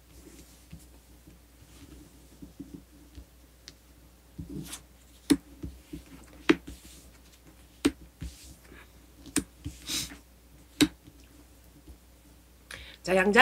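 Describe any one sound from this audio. Cards tap and slide on a cloth-covered table.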